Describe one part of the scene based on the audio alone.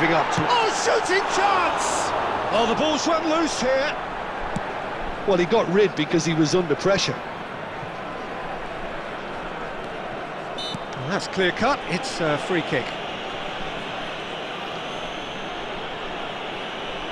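A stadium crowd murmurs and roars steadily in the distance.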